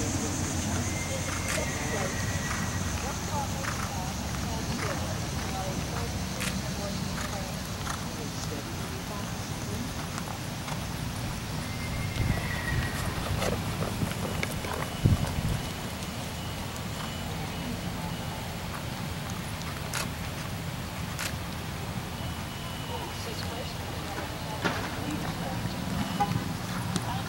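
Horse hooves thud softly on sand at a steady trot.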